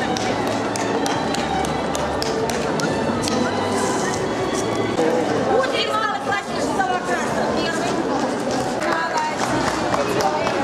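Many people chatter nearby in a large, echoing hall.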